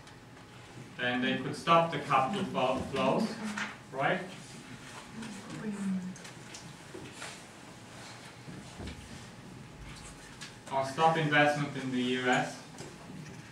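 A man speaks calmly, heard in a room with some echo.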